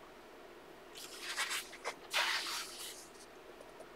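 A paper page turns with a soft rustle.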